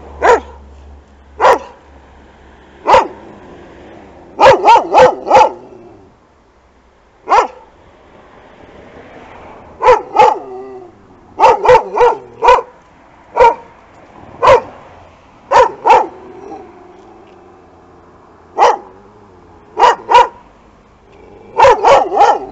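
A dog barks loudly and repeatedly close by.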